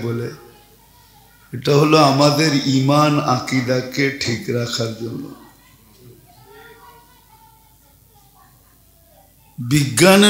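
An elderly man chants and speaks with feeling through a microphone over loudspeakers.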